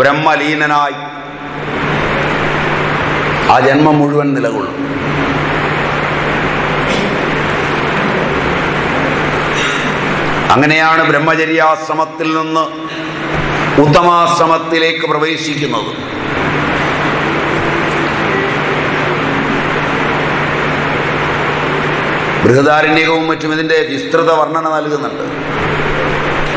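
A man speaks calmly nearby, in short bursts with pauses.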